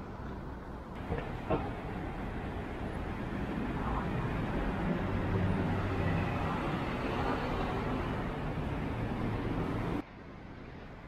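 Cars drive past on a busy street.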